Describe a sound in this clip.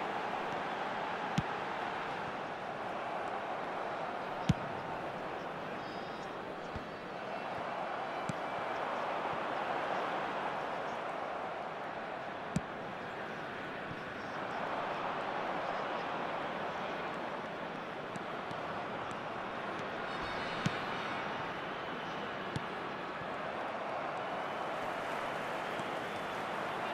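A large stadium crowd roars and chants, swelling and fading.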